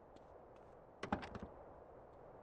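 A car door opens and shuts with a clunk.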